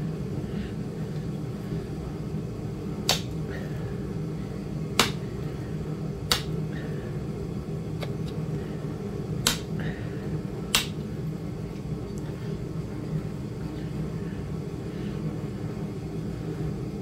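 A blade scrapes in short strokes across a sharpening stone.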